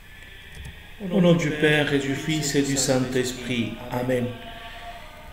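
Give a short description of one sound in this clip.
A middle-aged man speaks calmly and clearly into a microphone.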